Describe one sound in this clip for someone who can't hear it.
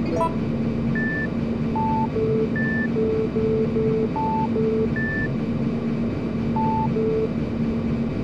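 A sequence of short electronic beeps plays a simple tune.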